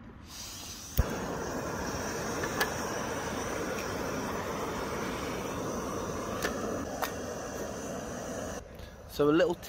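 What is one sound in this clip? A gas stove burner roars steadily.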